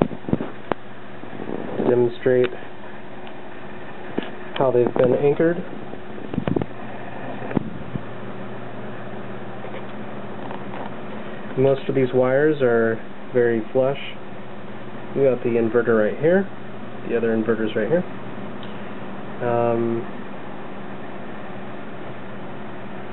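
Computer fans whir with a steady hum.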